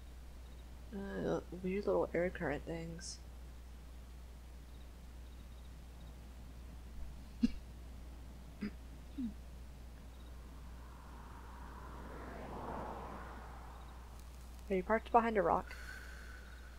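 A young woman talks with animation into a headset microphone, close by.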